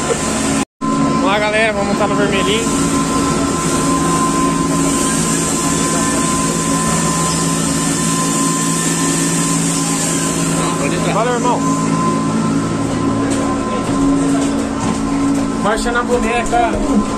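A pressure washer motor hums steadily.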